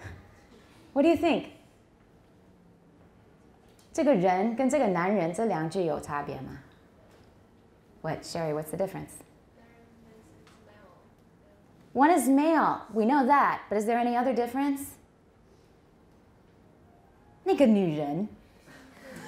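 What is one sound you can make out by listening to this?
A middle-aged woman speaks with animation into a microphone, in bursts with pauses.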